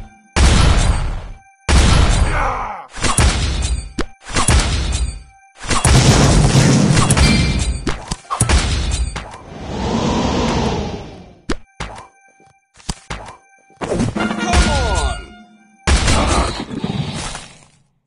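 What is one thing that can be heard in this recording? Fighters clash with thuds, clangs and whooshes of magic in a game battle.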